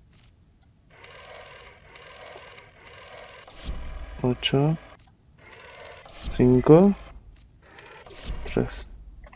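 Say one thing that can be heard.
A rotary telephone dial whirs and clicks as it turns.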